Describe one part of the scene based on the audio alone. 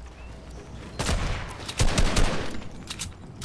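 A rifle fires a loud, booming shot.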